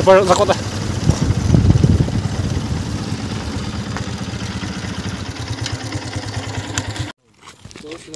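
A motorbike engine hums along a road.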